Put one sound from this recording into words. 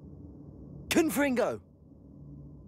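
A magic spell crackles with a sharp whoosh.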